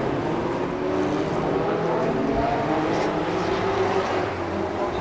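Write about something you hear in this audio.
Small engines rumble and whine steadily outdoors.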